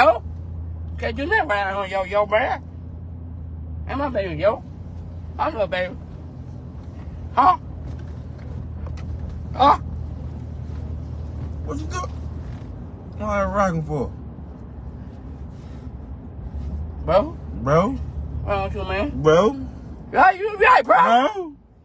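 A young man talks with animation close by.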